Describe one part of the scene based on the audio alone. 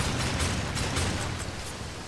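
A gun fires with loud blasts.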